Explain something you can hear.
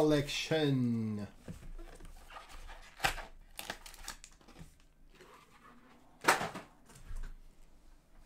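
Cellophane wrap crinkles as a box is opened.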